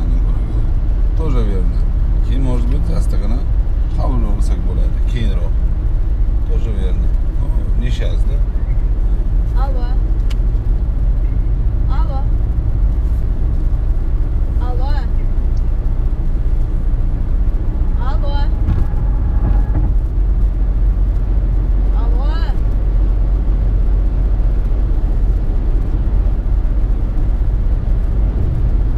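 Tyres roll steadily on a highway, heard from inside a moving car.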